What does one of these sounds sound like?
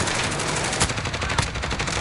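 Gunfire crackles in short rapid bursts.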